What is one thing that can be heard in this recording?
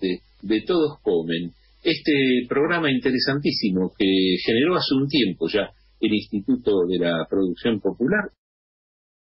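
An older man speaks calmly into a microphone, close by.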